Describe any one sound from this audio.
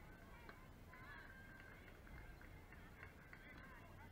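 A bat hits a softball with a sharp crack.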